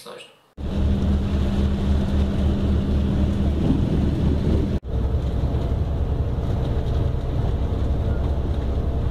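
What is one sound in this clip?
A vehicle engine rumbles steadily from inside.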